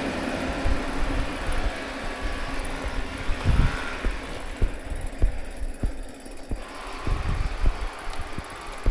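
Wind buffets and rumbles outdoors as the recording moves along.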